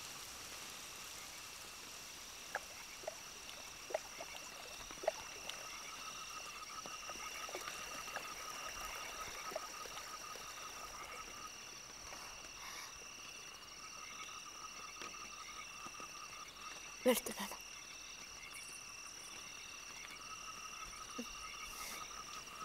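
Frogs croak in a steady, trilling chorus.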